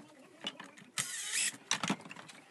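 A power drill whirs briefly.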